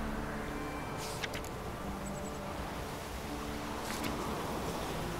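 A soft papery click sounds as a note is picked.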